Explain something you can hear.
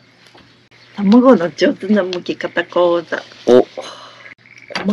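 A young woman talks brightly close by.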